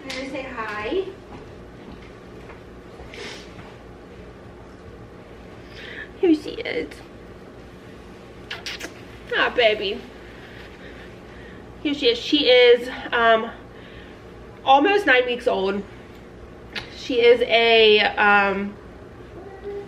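A young woman talks calmly and closely, with pauses.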